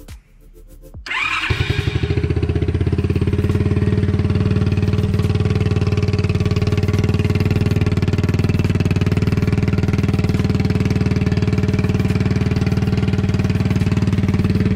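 A small motorcycle engine starts up and idles with a steady, throbbing putter.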